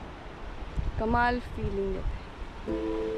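A woman speaks close by, with animation.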